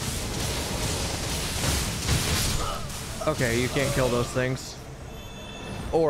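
A magic blast crackles and booms.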